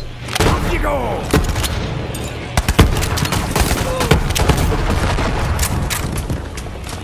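Gunfire bursts in rapid, loud cracks.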